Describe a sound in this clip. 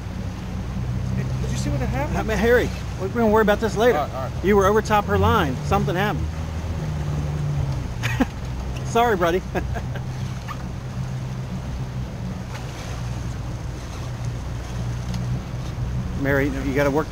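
A boat motor hums steadily.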